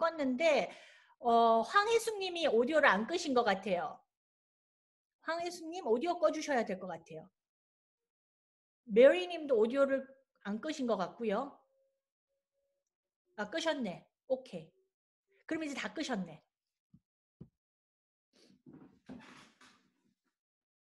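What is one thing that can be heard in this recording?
A woman speaks calmly and closely into a microphone, with pauses.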